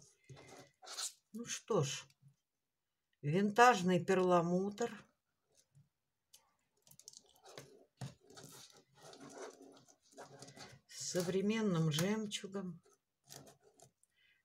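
Small beads click and rattle against each other.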